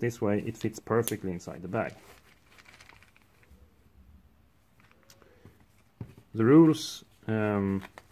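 A cloth bag rustles softly as hands handle it.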